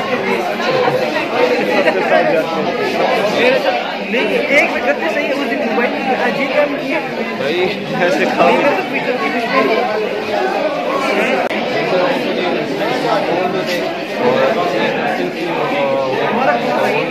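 Many voices chatter in a crowded room.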